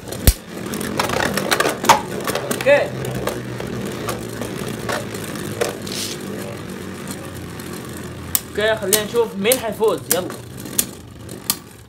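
Spinning tops clash together with sharp clicks.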